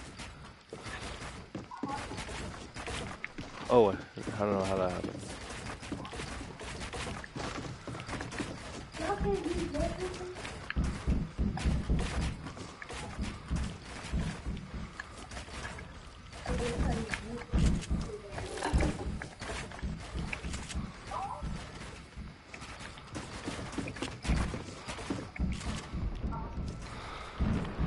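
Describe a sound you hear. Building pieces snap into place in rapid clicks.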